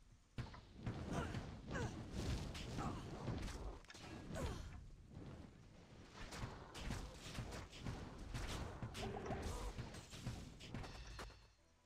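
Fiery spells burst with loud whooshing blasts.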